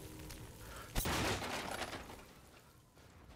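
A wooden door creaks open.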